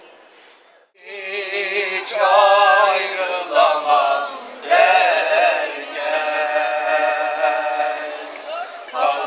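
Several elderly men sing loudly together, close by.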